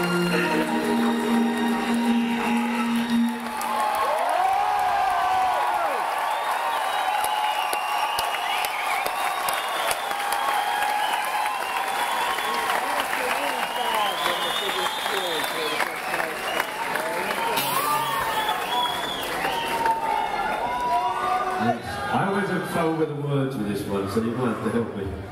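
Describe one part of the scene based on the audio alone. An electric guitar rings out loudly through amplifiers.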